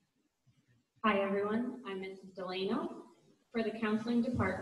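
A young woman speaks calmly into a microphone, heard through a loudspeaker.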